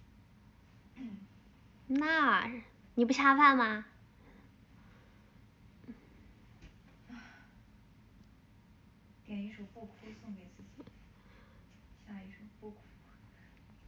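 A young woman speaks softly and playfully close to a microphone, in short bursts with pauses.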